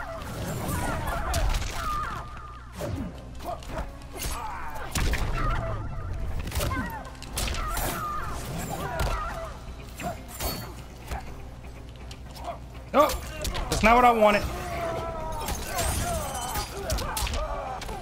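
Fighters grunt and cry out with effort.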